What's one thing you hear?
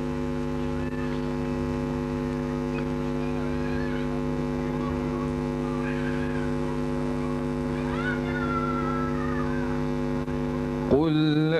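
A teenage boy recites in a slow, chanting voice through a loudspeaker, outdoors.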